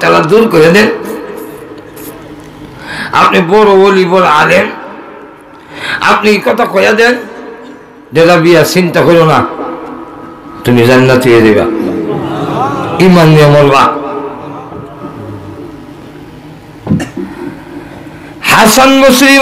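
A man chants in a drawn-out voice through a microphone, with a heavy echo.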